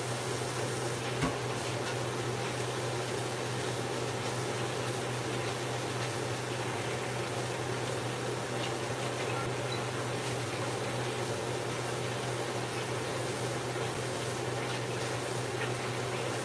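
Dishes clink faintly in a sink.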